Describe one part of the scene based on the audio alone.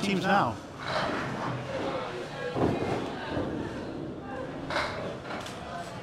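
A bowling ball rolls heavily down a wooden lane.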